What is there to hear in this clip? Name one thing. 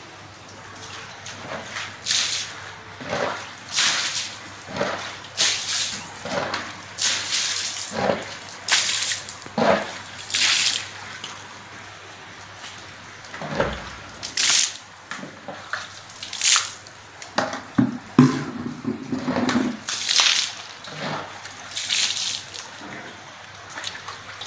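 A stiff brush scrubs a wet floor in quick, splashing strokes.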